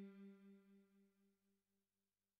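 A synthesizer note fades away.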